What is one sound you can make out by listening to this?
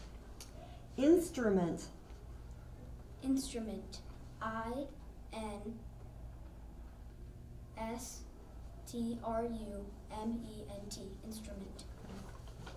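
A young boy speaks into a microphone.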